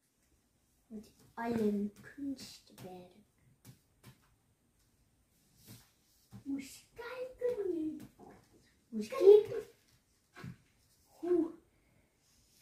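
A young child talks nearby.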